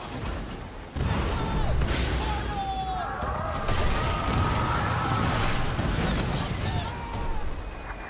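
Ship cannons fire in loud booming blasts.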